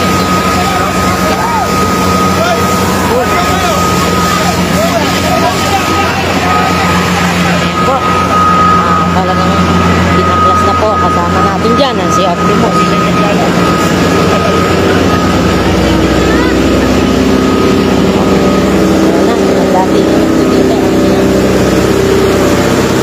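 A siren sounds steadily from an emergency vehicle nearby.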